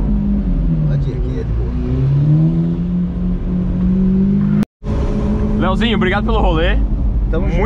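A car engine hums and revs up and down from inside the car.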